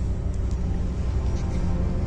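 A windshield wiper thumps across the glass.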